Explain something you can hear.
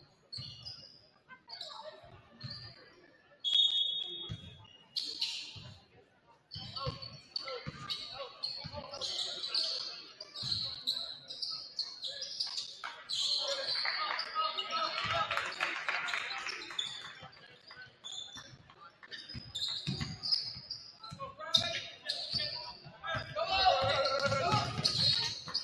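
A basketball bounces on a hardwood floor in a large echoing gym.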